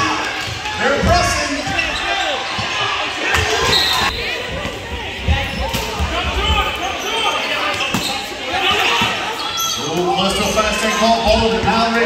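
A basketball bounces on a wooden floor with a thud.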